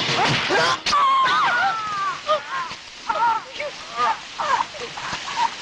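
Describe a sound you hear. A young woman screams in terror.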